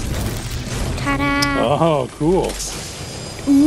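A treasure chest opens with a bright, rising chime.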